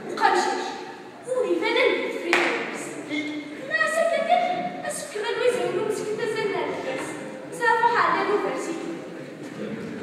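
A young woman speaks with feeling on a stage.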